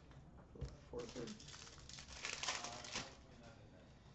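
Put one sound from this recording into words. Plastic card wrappers rustle and crinkle in hands.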